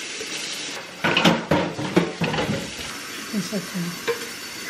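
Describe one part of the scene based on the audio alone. Water pours over grounds and ice into a tall container.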